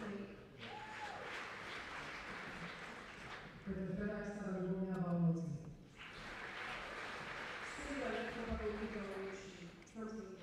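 An audience claps steadily in a large hall.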